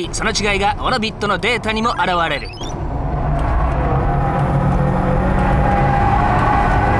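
A car engine roars steadily at high revs from close inside the cabin.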